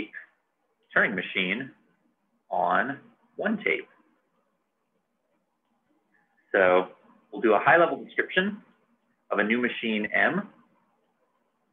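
A man speaks calmly and clearly into a close microphone, pausing between phrases.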